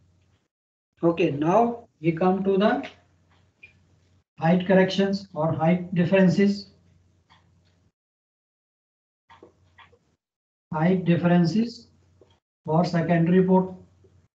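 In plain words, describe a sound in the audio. A man speaks calmly into a microphone, explaining in short phrases.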